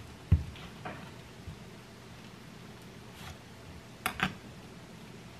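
A knife taps and chops into an avocado on a cutting board.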